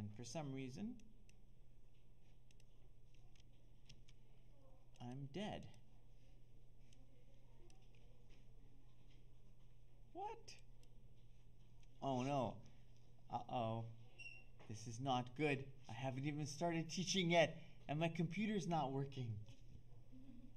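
A man speaks calmly and with pauses, close to a microphone.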